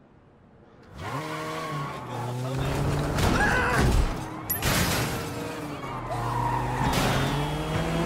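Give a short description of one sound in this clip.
A car engine revs loudly as the car speeds along.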